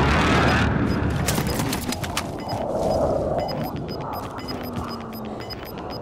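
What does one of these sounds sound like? Footsteps thud quickly on dry ground.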